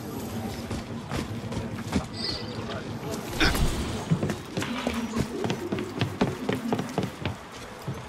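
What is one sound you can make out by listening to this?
Footsteps patter quickly on wood and stone.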